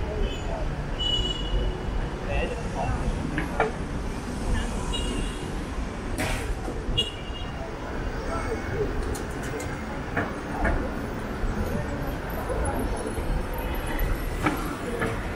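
Steady city traffic rumbles past at a busy crossing.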